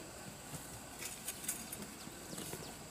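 A hoe scrapes and thuds into dry soil.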